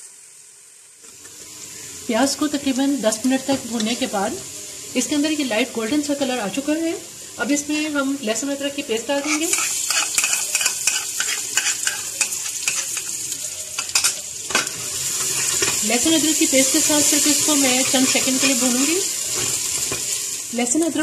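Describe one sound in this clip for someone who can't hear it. Onions sizzle as they fry in hot oil.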